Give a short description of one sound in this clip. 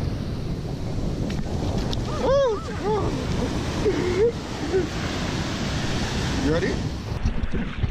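Small waves wash up and hiss over sand.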